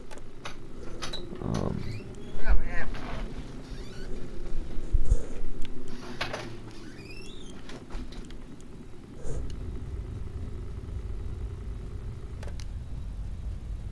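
Electronic beeps and clicks sound from a control console.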